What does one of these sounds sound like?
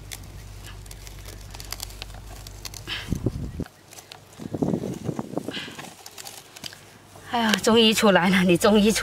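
Hands scrape and dig through loose, damp soil.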